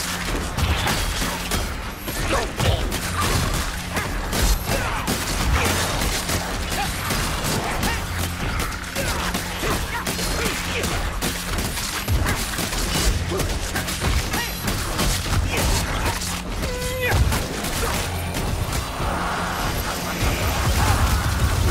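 Creatures screech and squeal in a frenzied swarm.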